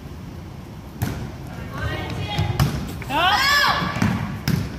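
A volleyball is hit with a sharp slap.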